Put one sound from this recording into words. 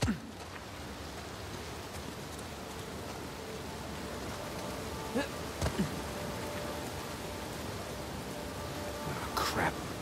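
Footsteps run through grass and over stones.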